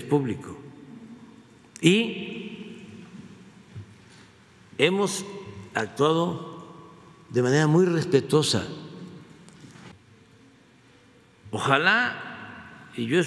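An elderly man speaks slowly and deliberately into a microphone, with pauses, in a room that echoes slightly.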